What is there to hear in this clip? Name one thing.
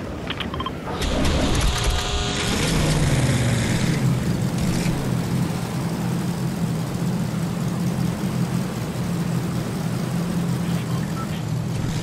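A flying vehicle's engines roar and hum.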